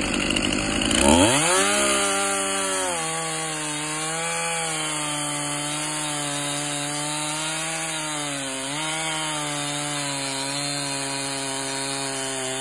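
A chainsaw engine roars steadily while cutting into a log.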